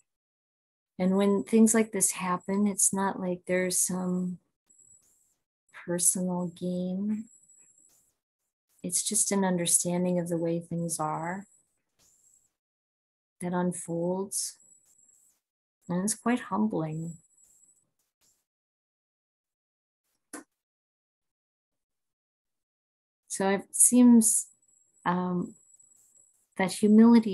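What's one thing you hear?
A middle-aged woman speaks calmly and close up, through an online call, with pauses.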